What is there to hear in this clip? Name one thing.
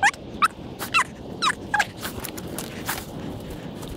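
Boots shuffle on soft muddy ground.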